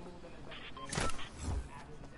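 A soft thud sounds on landing.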